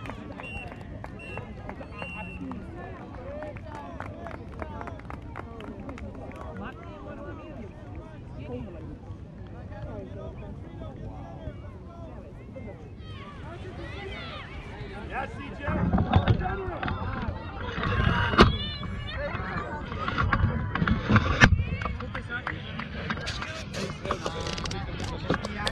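People chat at a distance outdoors.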